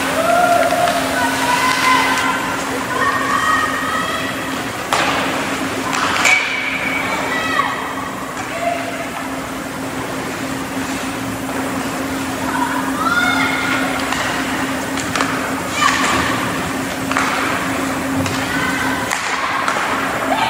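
Young players shout and call out to each other across the rink.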